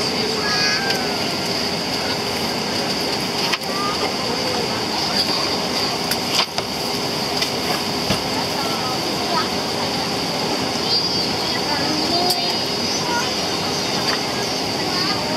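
Jet engines roar steadily as a large airliner taxis close by.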